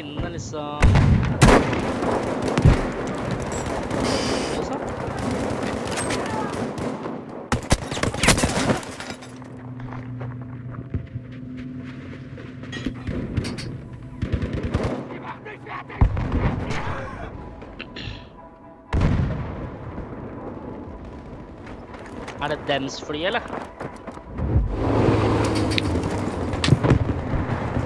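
Rifle shots crack loudly, one at a time, with echoes.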